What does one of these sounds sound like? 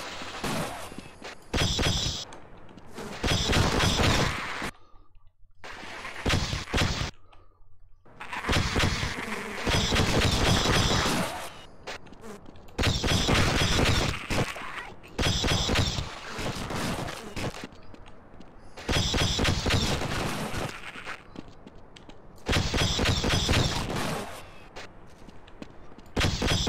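A game weapon fires loud crackling energy blasts in bursts.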